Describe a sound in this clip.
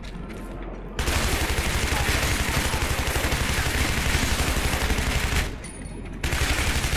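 A rifle fires in rapid, rattling bursts.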